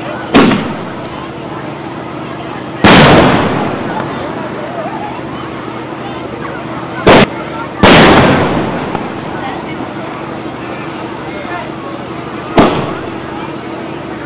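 Fireworks burst with loud booming bangs that echo away.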